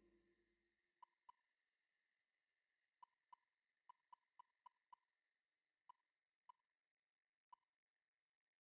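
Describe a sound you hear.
Short electronic menu blips tick, one by one, as a selection moves.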